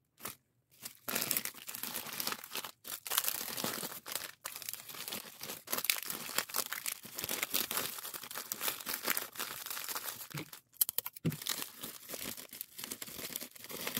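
Bubble wrap crackles as hands unwrap a parcel.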